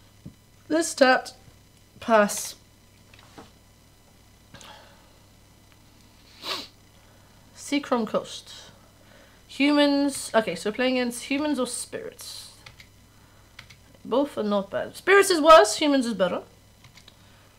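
A young woman talks casually into a close microphone, pausing often.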